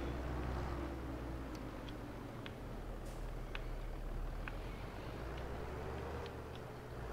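A tractor engine hums steadily at low speed.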